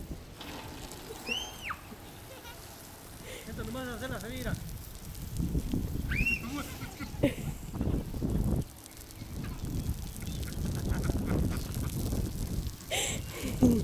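Lawn sprinklers hiss as they spray water.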